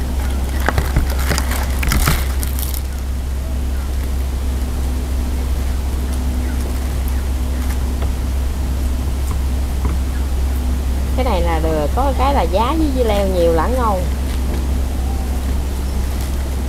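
A knife cuts through fresh vegetables.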